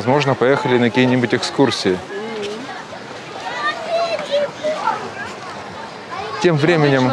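Many people chatter and call out at a distance outdoors.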